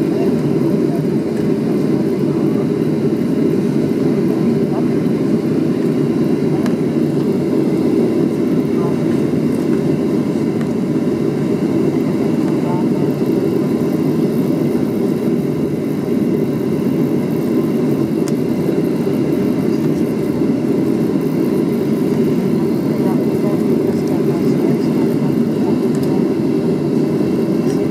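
Tyres rumble low over the pavement.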